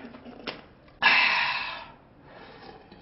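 A plastic bottle cap twists open with a hiss.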